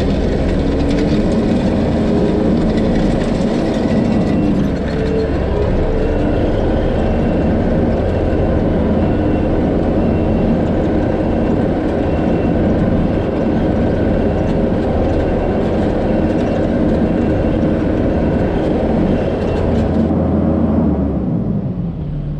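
A drag harrow scrapes and rattles over a dirt track.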